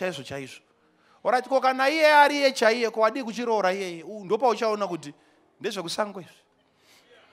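A man preaches loudly and with animation through a microphone in a large hall.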